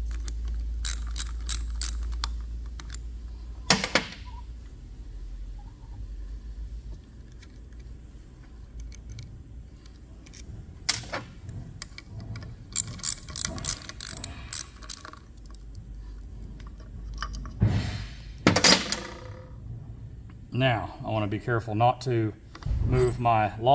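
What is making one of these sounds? Metal parts clink and scrape against each other.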